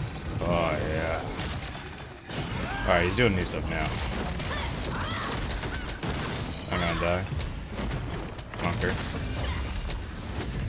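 Magic attacks crackle and burst in a fight.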